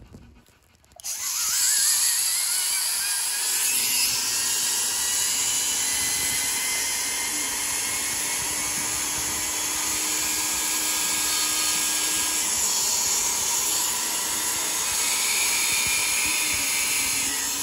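A rotary tool whines at high speed, grinding a small piece of bone.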